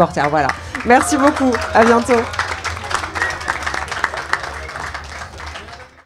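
A crowd claps in applause.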